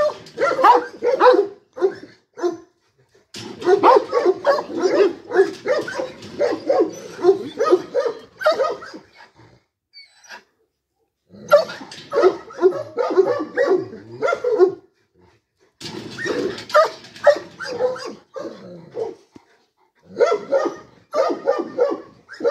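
A large dog barks loudly and repeatedly close by.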